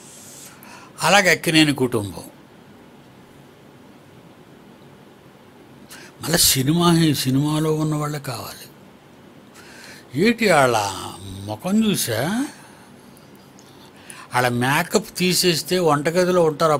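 An elderly man speaks with animation into a close microphone, in short bursts with pauses.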